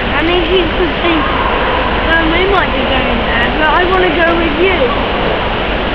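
A woman speaks brightly and coaxingly to a dog close by.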